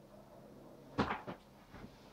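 A book is put down on a table with a thud.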